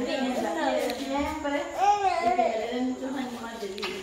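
A girl talks and laughs excitedly close by.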